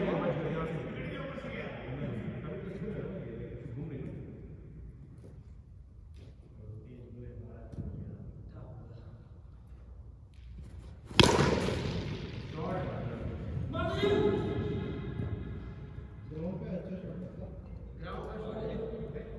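Men shout and call out from across a large echoing hall.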